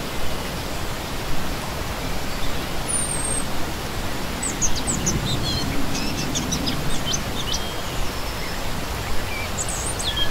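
A stream rushes and splashes steadily over rocks.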